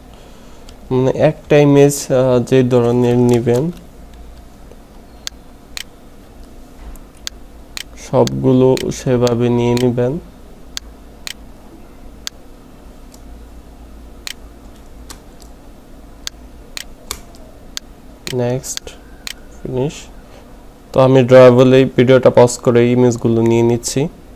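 A computer mouse clicks several times.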